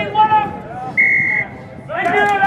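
A referee's whistle blows a short, sharp blast.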